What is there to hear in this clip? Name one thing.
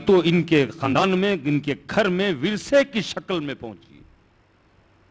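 A man speaks loudly and with passion through a microphone.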